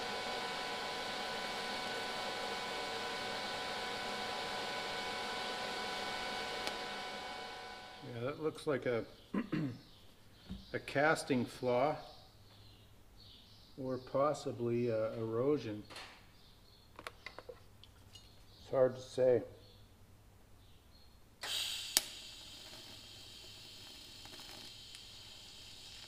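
An electric welding arc hisses and buzzes steadily.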